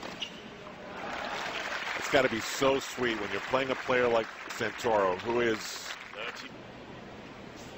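A crowd applauds and cheers loudly.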